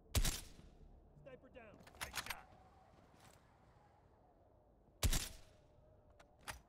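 A rifle fires with a loud, sharp crack that echoes away.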